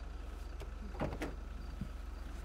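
A car door opens and shuts with a clunk.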